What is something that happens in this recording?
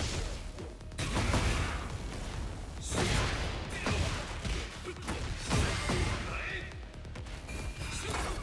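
Energy blasts whoosh and explode.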